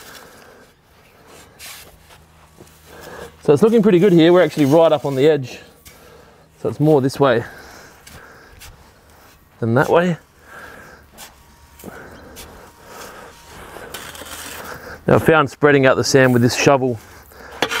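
A shovel scrapes through sand.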